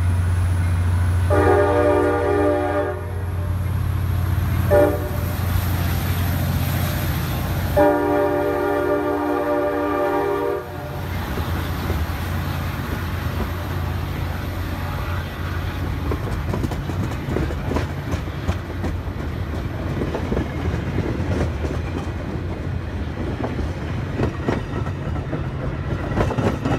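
Train wheels clatter and rumble steadily along the rails.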